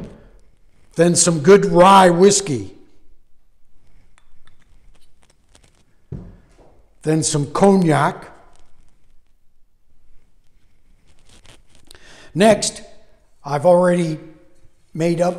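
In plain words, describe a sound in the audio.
A middle-aged man speaks calmly and clearly into a nearby microphone.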